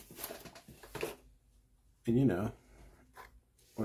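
A knife slides into a leather sheath.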